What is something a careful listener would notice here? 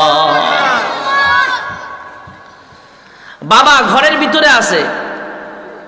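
A man chants melodiously into a microphone, with echo through loudspeakers.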